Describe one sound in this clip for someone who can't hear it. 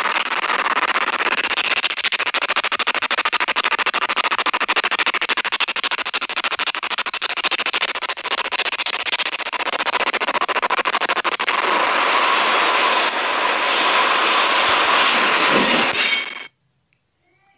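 A swarm of flapping, screeching creatures roars in a fierce rush.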